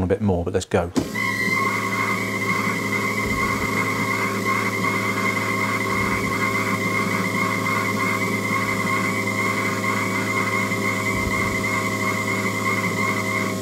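A test machine runs with a steady hum and whine.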